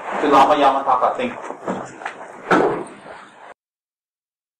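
A man speaks calmly and closely.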